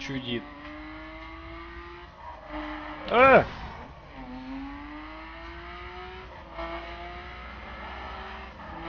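A car engine revs and rises in pitch as the car speeds along.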